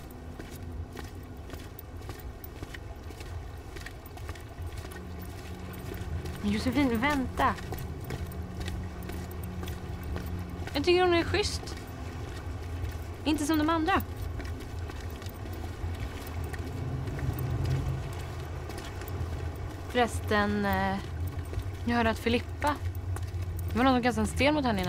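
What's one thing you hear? Footsteps tap slowly on pavement outdoors.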